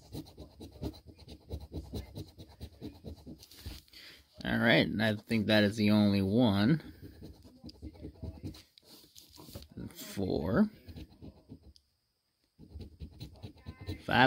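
A coin scratches rapidly across a stiff card.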